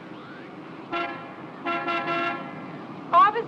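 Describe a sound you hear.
A woman speaks close by with animation.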